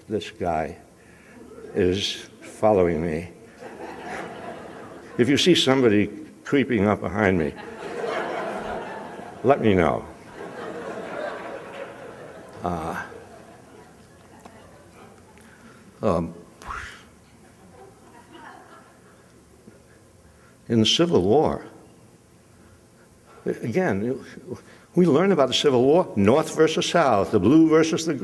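An elderly man speaks slowly and haltingly into a microphone, with pauses.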